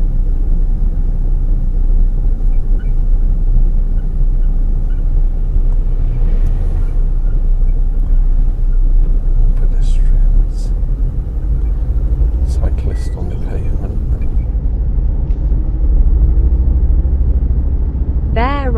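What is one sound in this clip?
A car engine hums steadily from inside, with road rumble.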